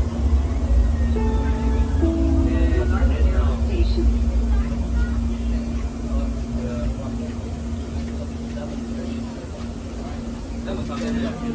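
A train rumbles loudly and slows to a stop.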